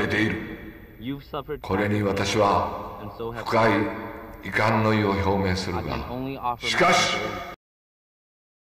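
An older man speaks slowly and gravely.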